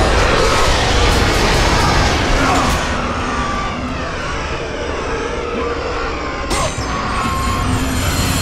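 Blades whoosh and slash through the air.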